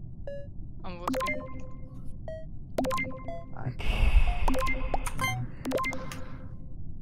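Short electronic chimes ring out several times in quick succession.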